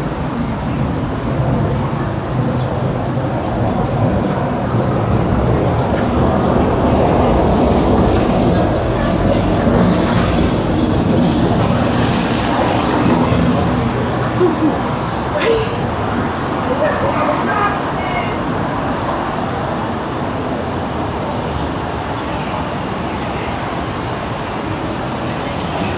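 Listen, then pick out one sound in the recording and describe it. Traffic rumbles steadily along a city street.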